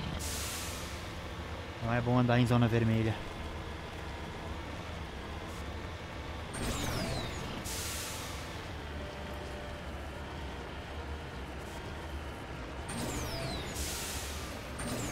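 A vehicle engine rumbles low and steadily.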